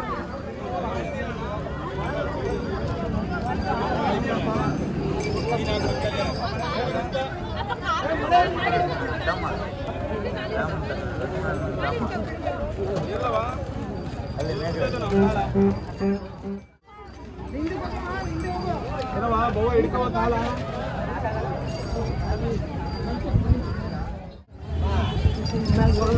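A crowd of men and women talks and calls out outdoors.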